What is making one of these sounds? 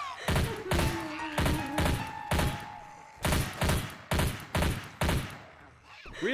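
A gun fires in rapid bursts of loud shots.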